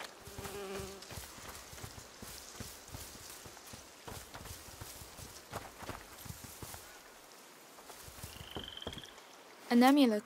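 Footsteps crunch softly on grass and dirt.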